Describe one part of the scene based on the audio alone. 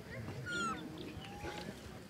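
Leaves rustle as a monkey moves through a tree.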